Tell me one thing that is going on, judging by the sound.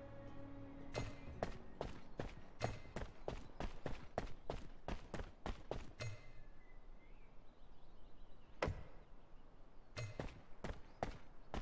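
Footsteps thud quickly on grass and dirt.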